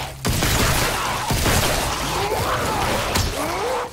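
A creature shrieks and snarls up close.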